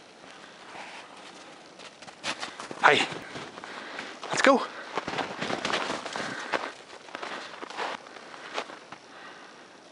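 A dog's paws patter and crunch through snow.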